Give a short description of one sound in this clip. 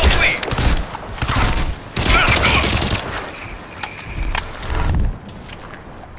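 Rapid gunfire bursts ring out loudly.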